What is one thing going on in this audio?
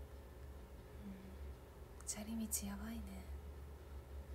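A young woman speaks briefly and quietly, close by.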